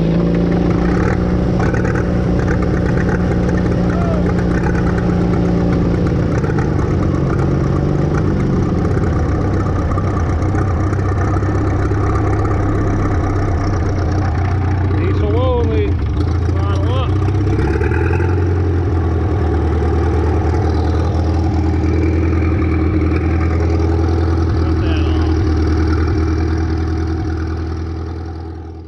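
A tractor's diesel engine idles and rumbles close by.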